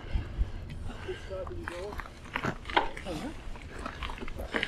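An older woman talks nearby outdoors.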